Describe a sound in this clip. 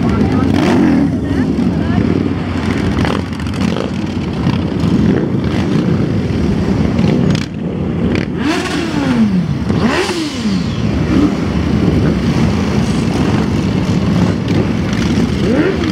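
Motorcycle engines rumble loudly as bikes ride past one after another.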